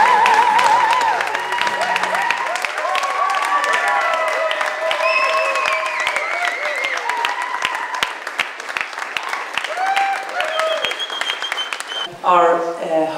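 A small crowd claps and cheers in a room.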